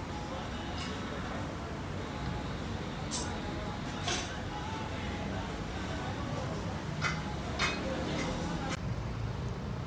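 Metal utensils clink and scrape on a grill.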